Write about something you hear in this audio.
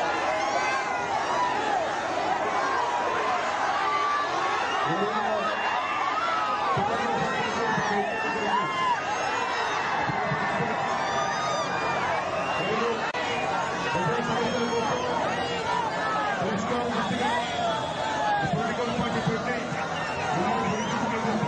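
A man speaks loudly and with animation through a microphone and loudspeaker.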